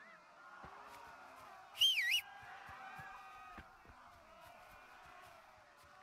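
Footsteps rustle through tall grass and bushes.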